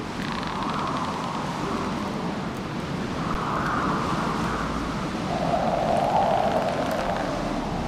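Strong wind howls and gusts outdoors.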